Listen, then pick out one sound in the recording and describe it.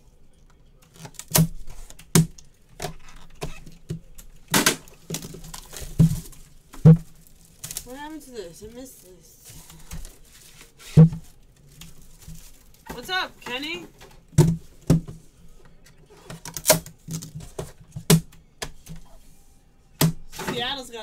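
Cardboard boxes knock and tap as they are handled.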